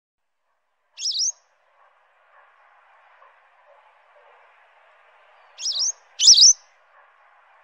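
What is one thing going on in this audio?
A small bird gives sharp, high chirps.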